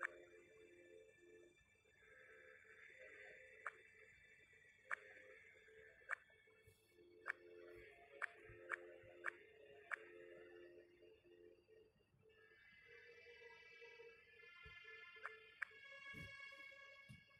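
Soft game music plays throughout.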